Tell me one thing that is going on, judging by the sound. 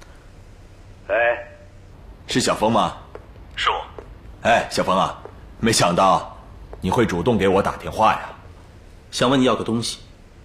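A young man speaks calmly into a phone.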